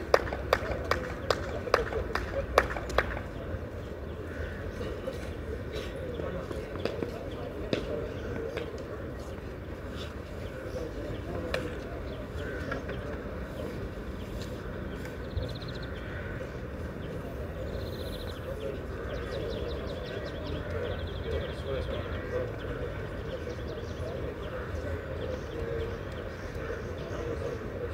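Spectators talk quietly in the distance outdoors.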